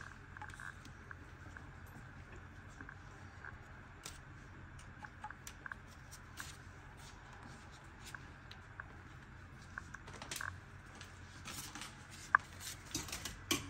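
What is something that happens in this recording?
Lasagne sheets tap and rustle softly as they are laid in a glass dish.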